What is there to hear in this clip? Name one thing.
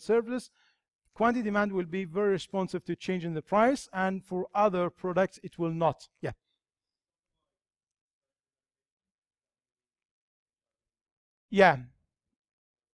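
A man lectures with animation, close to a microphone.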